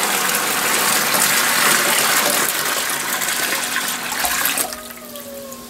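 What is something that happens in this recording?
Liquid pours and splashes from a bucket into a container.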